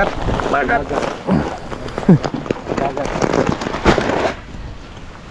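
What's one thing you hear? A plastic sack rustles as it is handled.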